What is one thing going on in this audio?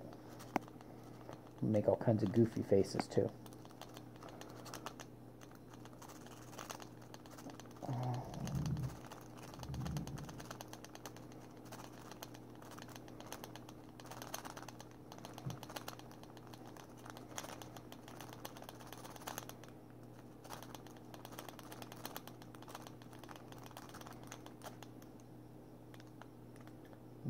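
Small metal parts click and scrape softly.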